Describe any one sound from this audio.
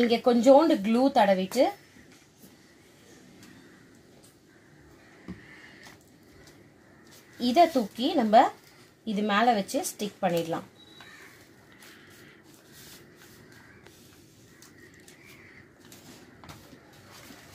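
Paper rustles and crinkles as it is folded and pressed.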